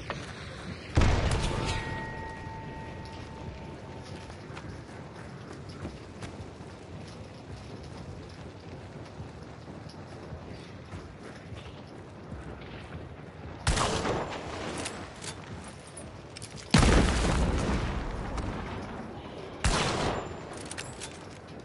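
Loud gunshots ring out a few times, each echoing away.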